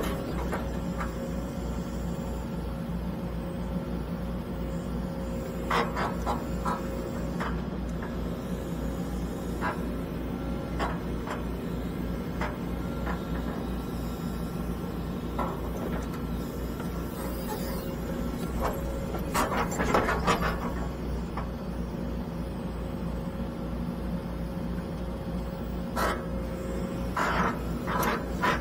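A diesel excavator engine rumbles steadily from inside the cab.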